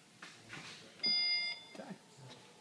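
A car's tailgate gives a short electronic beep as it starts to close.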